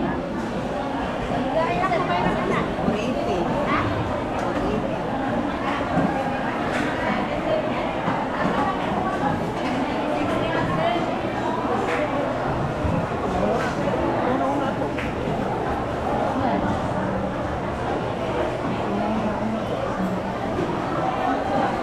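A crowd of men and women chatter all around, in a busy indoor space.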